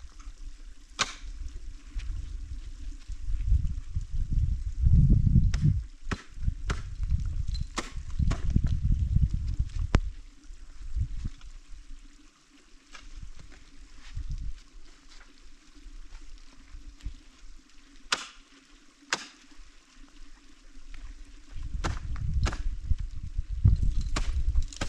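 Ice tools strike ice with sharp thunks.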